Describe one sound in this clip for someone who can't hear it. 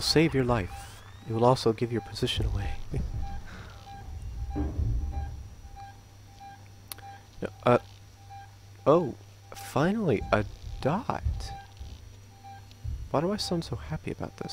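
An electronic device beeps in short, steady, evenly spaced pulses.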